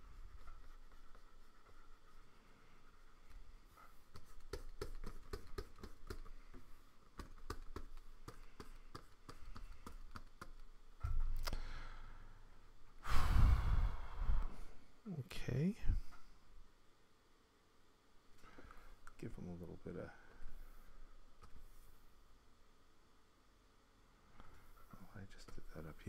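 A middle-aged man talks calmly and casually, close to a microphone.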